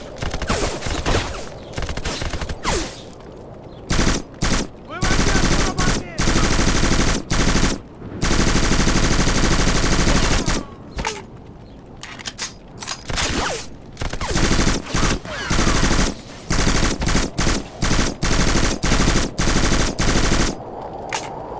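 An assault rifle fires loud rapid bursts.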